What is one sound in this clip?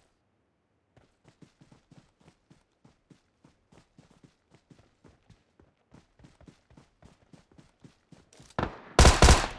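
Footsteps thud quickly and evenly through dry grass.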